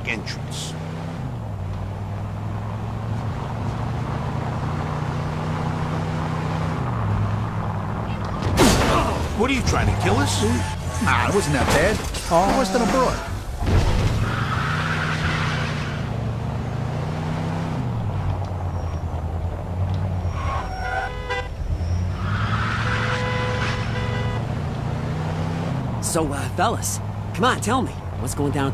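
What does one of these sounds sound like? A car engine hums and shifts through gears.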